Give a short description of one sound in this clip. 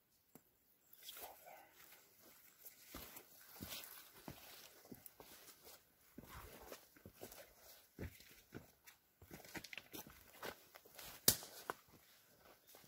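Footsteps crunch and rustle through dry undergrowth.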